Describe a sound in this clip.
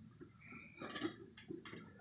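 A hand presses on a thin metal panel, making it rattle softly.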